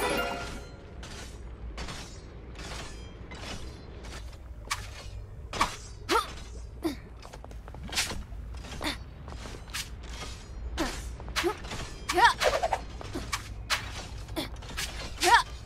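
Quick cartoonish footsteps patter across stone.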